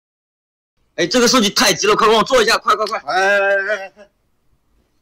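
A young man speaks quickly and with animation close by.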